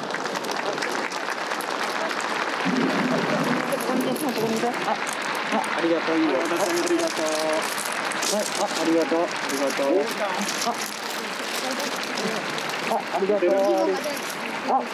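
A large outdoor crowd murmurs steadily in the distance.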